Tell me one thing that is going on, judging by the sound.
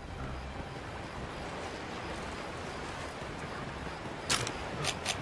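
Water splashes steadily under running footsteps.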